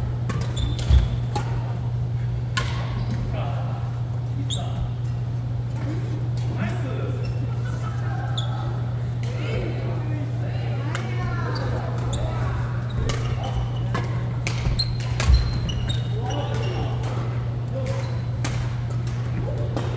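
Rackets pop sharply against shuttlecocks in a large echoing hall.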